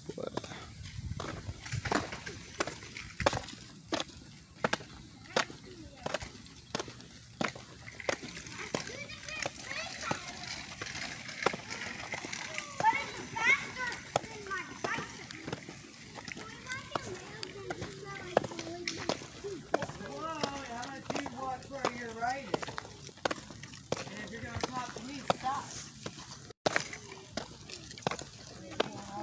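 Footsteps tap on asphalt close by.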